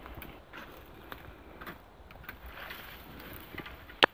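Leafy branches rustle and brush past.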